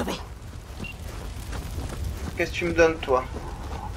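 Flames roar and crackle nearby.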